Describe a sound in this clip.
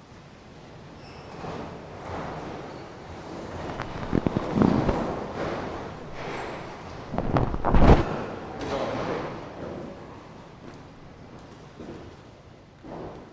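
A congregation murmurs and shuffles in a large echoing hall.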